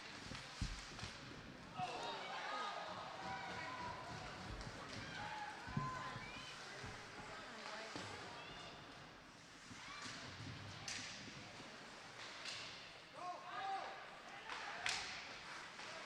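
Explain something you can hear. Hockey sticks clack against a puck and the boards.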